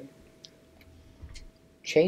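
A button clicks as it is pressed.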